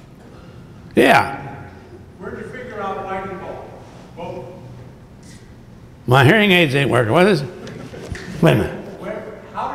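A man's voice rises in loud, emphatic outbursts through a microphone.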